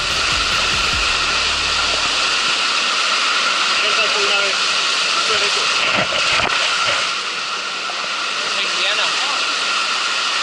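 A stream rushes and splashes loudly over rocks.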